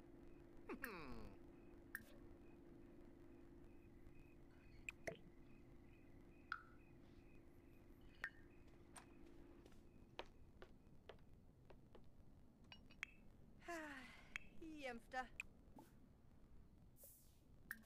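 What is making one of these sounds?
Short soft clicks of a game menu sound now and then.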